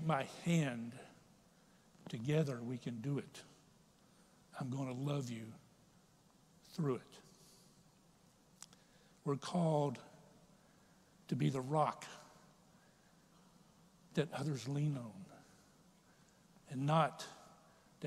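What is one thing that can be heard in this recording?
A middle-aged man preaches slowly and deliberately through a microphone, in a large echoing hall.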